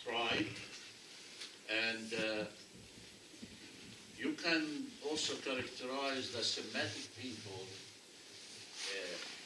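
An elderly man speaks with animation nearby.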